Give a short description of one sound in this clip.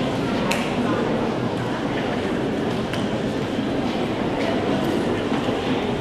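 Footsteps thud on a stage.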